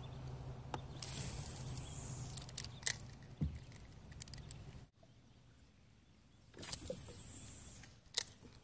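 A fishing line whizzes off a reel during a cast.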